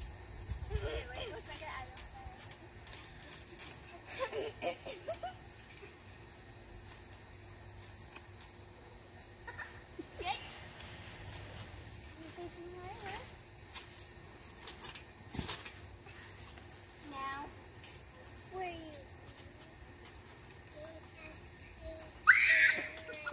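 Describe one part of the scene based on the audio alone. Young girls talk and laugh outdoors.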